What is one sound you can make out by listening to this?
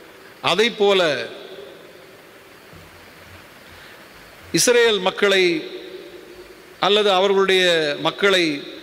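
A middle-aged man reads out slowly through a microphone in an echoing hall.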